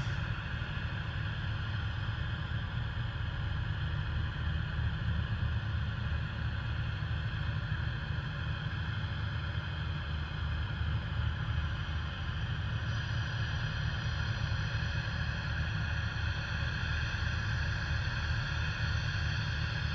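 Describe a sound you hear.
Gas hisses steadily from a venting rocket nearby.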